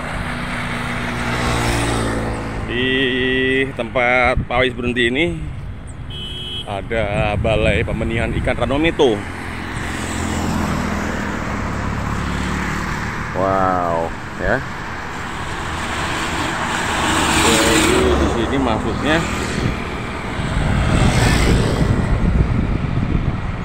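A motorbike engine passes close by on the road.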